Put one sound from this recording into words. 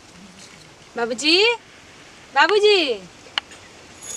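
A young woman calls out loudly nearby in long drawn-out cries.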